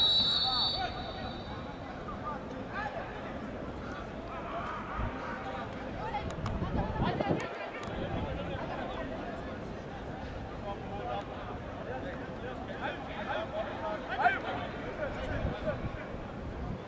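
A crowd of spectators chatters and calls out in an open-air stadium.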